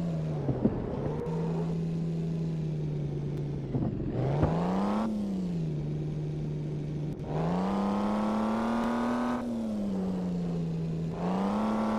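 Tyres screech on asphalt as a car drifts around corners.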